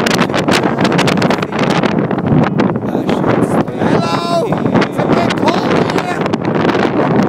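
Strong wind buffets the microphone outdoors.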